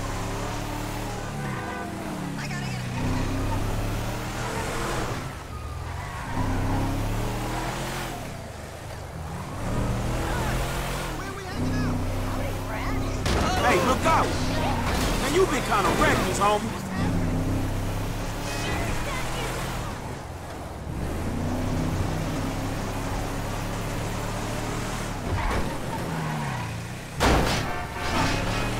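A pickup truck's engine revs up and down as it speeds along.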